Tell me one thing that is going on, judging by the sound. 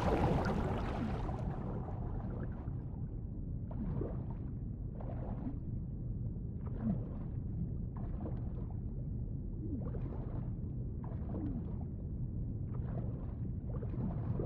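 Deep water rumbles steadily.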